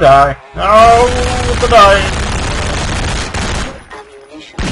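Gunshots fire rapidly and loudly.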